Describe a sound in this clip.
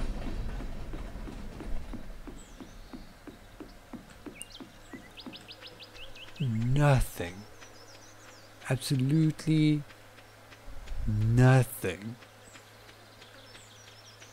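Quick footsteps tap steadily.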